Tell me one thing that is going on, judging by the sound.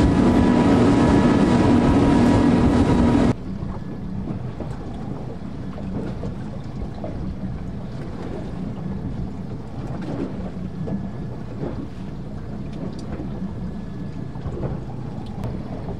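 Waves splash and lap against each other.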